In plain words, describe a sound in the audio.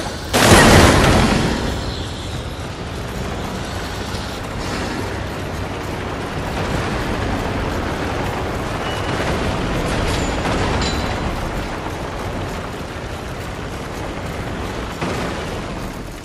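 Wind blows in a steady roar.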